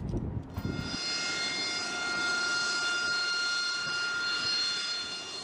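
A jet engine whines loudly and steadily as a jet taxis close by.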